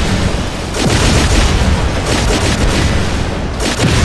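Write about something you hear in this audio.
Explosions blast close by.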